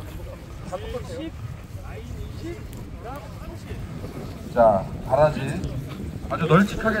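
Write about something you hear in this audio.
Several men talk and call out nearby outdoors, sometimes loudly.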